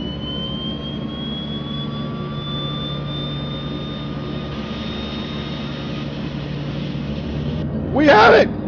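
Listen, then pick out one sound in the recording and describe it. Aircraft engines drone steadily, with a whine that slowly rises in pitch.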